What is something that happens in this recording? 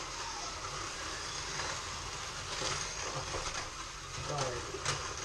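Small electric toy cars whir around a track.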